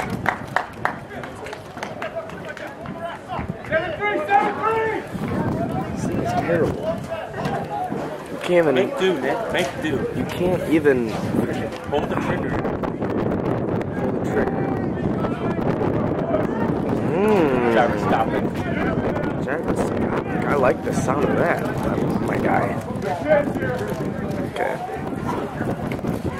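Young men and women shout and call out across an open field, some near and some far.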